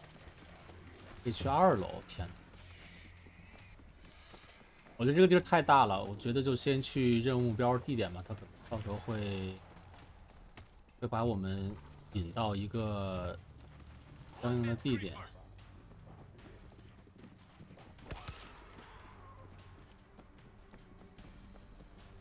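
Footsteps hurry across a hard floor.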